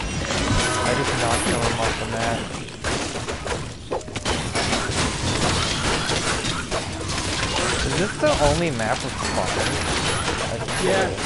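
Weapons clash and thud rapidly against enemies.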